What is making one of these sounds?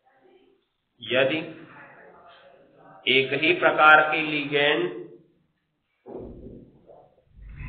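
A man speaks in a teaching manner, close by, with pauses.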